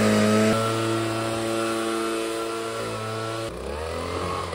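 A leaf blower engine runs close by.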